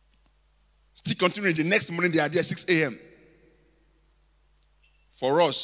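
A man preaches with animation into a microphone, echoing in a large hall.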